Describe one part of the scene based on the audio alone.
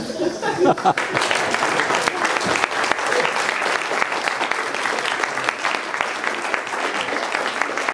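A crowd applauds steadily, with hands clapping close by.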